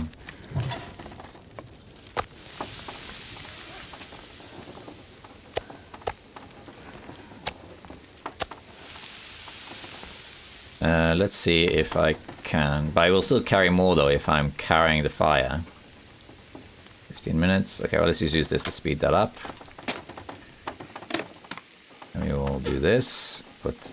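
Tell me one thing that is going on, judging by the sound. A wood fire crackles in a stove.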